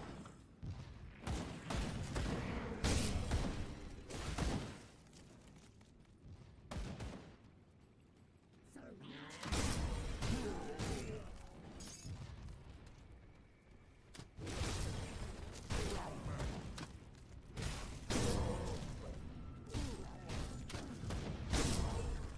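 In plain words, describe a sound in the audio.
Spell blasts and magic bursts crackle and boom in a fast fight.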